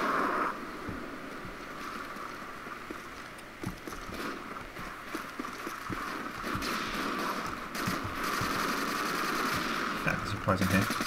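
Footsteps crunch steadily on gravel and dirt.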